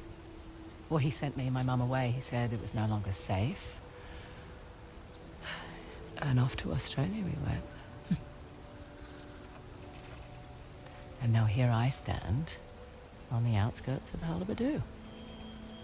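Another young woman answers in a low, calm voice, close by.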